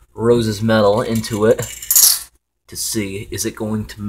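A glass beaker is set down on a metal baking tray with a light clink.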